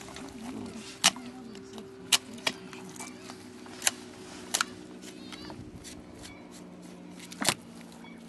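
A knife taps and knocks against a table now and then.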